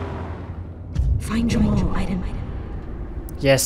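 A man speaks in a low, calm voice.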